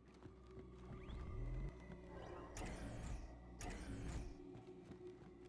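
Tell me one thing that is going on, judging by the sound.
Electric bolts crackle and zap in bursts.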